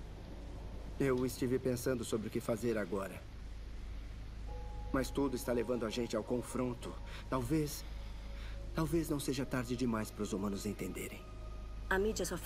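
A young man speaks calmly and quietly, close by.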